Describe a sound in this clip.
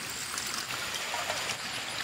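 Water splashes and sloshes in a metal basin.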